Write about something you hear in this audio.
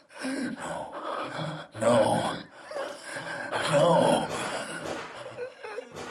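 A young woman pleads in distress.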